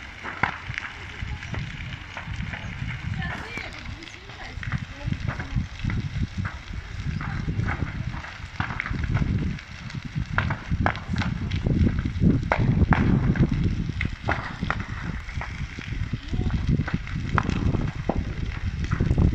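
A large fire roars and crackles, with sharp pops and snaps.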